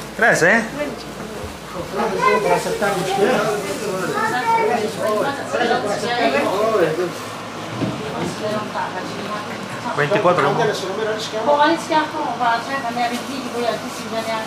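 Several adults talk and laugh together close by.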